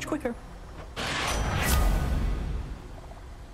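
A shimmering magical chime swells and fades.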